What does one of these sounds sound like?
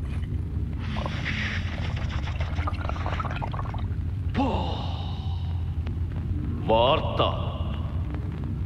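A man plays a flute with wavering notes.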